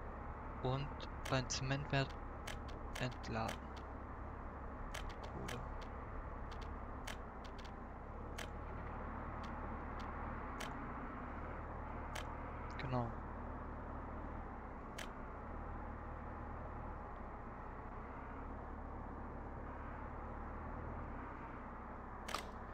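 Short soft clicks sound as menu buttons are pressed.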